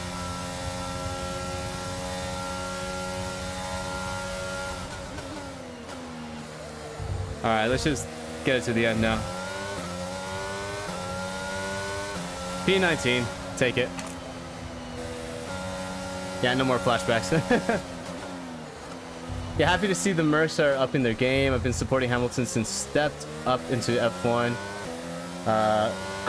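A racing car engine whines steadily and shifts gears.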